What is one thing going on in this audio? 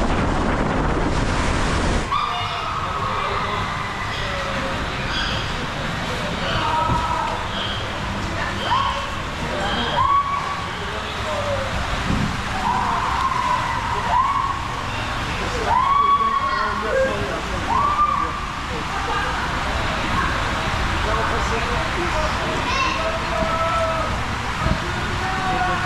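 Water rushes and splashes steadily down a slide in an echoing hall.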